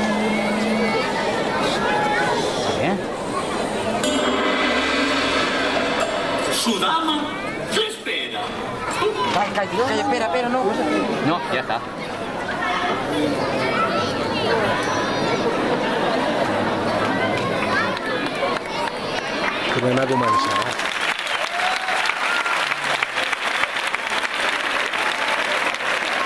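A large crowd of children murmurs and chatters.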